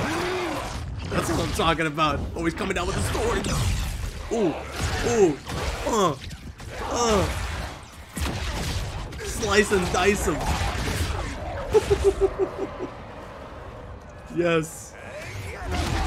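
A man with a deep voice speaks dramatically through a loudspeaker.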